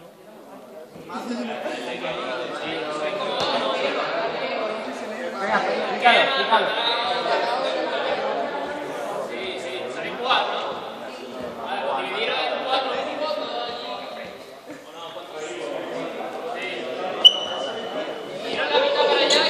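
A group of young people chatter and laugh in a large echoing hall.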